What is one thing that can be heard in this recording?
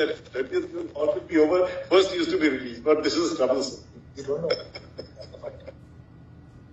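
A man speaks calmly into a microphone, heard through an online call.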